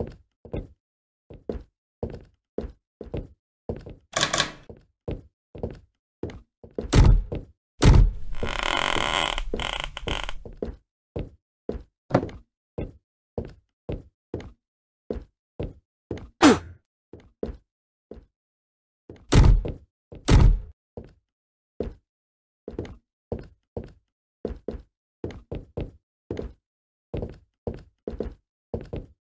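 Footsteps thud on a wooden floor at a steady pace.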